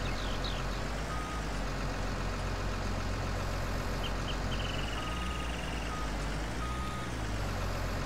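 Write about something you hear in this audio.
A heavy diesel engine rumbles steadily.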